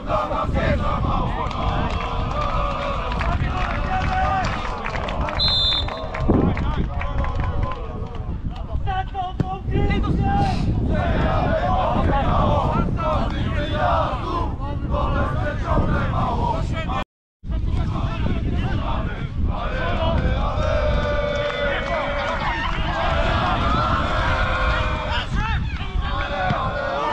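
Wind blows hard across an open field.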